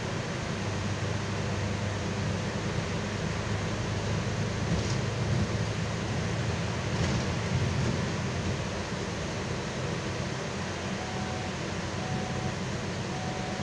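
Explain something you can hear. A bus engine hums steadily as the bus drives along.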